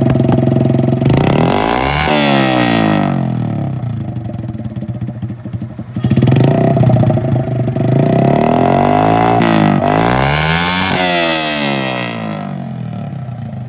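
A motorcycle engine revs up sharply and drops back, again and again.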